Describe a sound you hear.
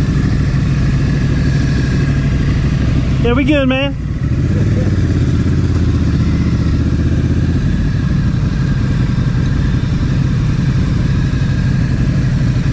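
A motorcycle engine rumbles steadily nearby.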